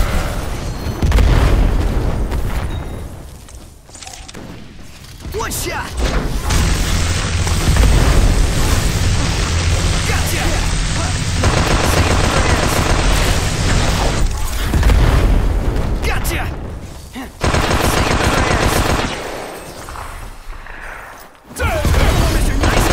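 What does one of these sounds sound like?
Fire explodes with a loud roar.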